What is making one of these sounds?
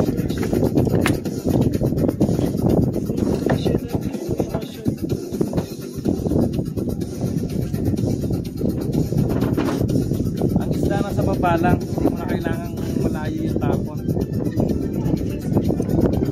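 Wind blows and rumbles strongly across the microphone outdoors.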